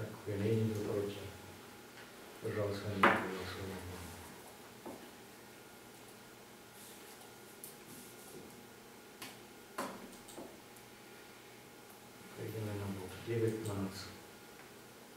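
A man speaks calmly in a quiet room, pausing between short phrases.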